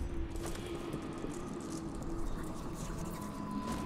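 Footsteps rustle through undergrowth.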